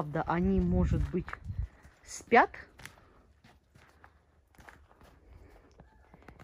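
Small footsteps crunch softly on snow.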